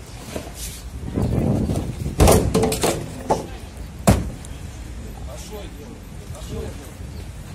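Several men argue loudly outdoors.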